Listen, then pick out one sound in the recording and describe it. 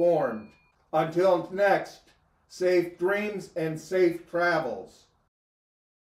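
A middle-aged man speaks expressively and close to a microphone.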